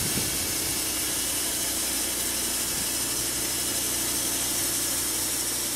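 A band saw mill cuts steadily through a log with a loud, continuous whine.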